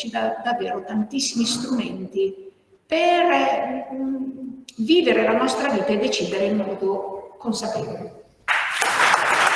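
An older woman speaks calmly through a microphone in an echoing hall.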